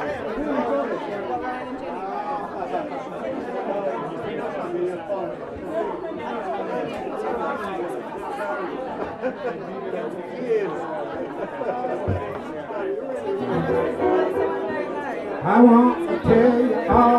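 Many people chatter all around in a crowded room.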